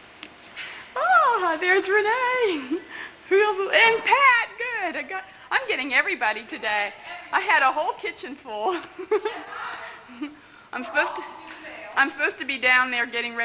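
A young woman calls out loudly and cheerfully from a short distance.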